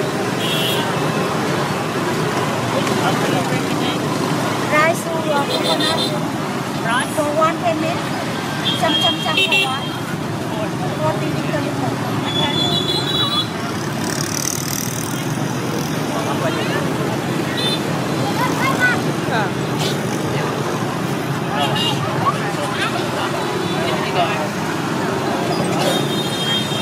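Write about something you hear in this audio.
A crowd chatters outdoors on a busy street.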